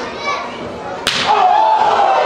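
A wrestler slams onto the ring mat with a loud thud.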